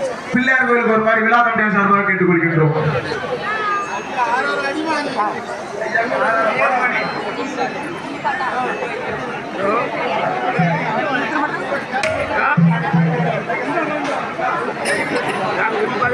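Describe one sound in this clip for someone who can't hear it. A crowd of people talk and chatter loudly all around.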